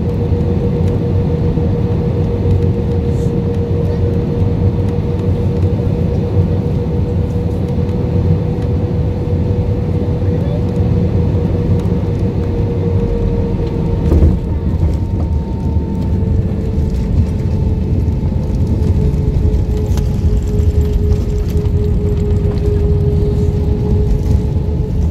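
Jet engines roar loudly and steadily, heard from inside an airliner cabin.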